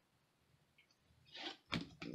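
A plastic card sleeve rustles and taps as it is handled.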